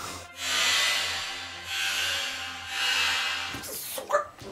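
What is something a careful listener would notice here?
Compressed air hisses in strong bursts from a spray can.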